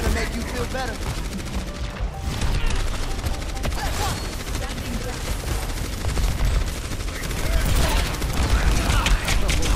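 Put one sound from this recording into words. Energy weapons fire and crackle in rapid bursts.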